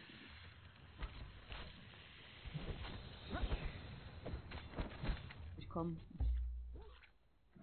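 Weapons strike a creature with dull thuds.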